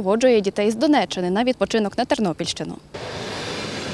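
A young woman speaks clearly into a microphone.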